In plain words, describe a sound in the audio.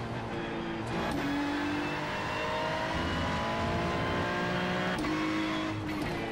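A racing car engine roars at high revs, its pitch jumping with each gear change.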